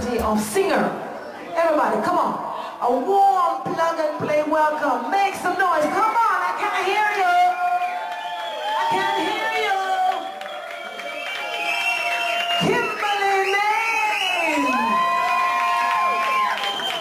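A woman sings into a microphone through loudspeakers, in an echoing room.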